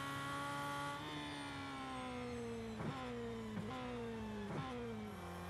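A racing car engine drops in pitch as the car slows down.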